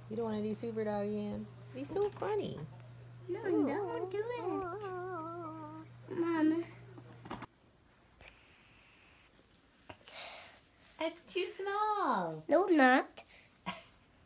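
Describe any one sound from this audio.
A young child talks playfully close by.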